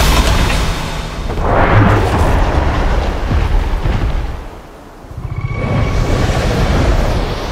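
Wind rushes loudly past as a figure flies on a cloud.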